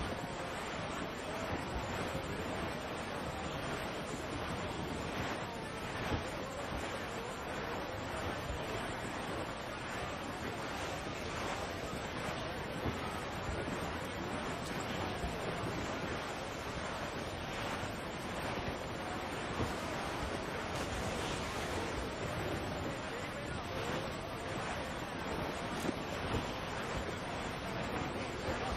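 Wind blows hard and steadily outdoors.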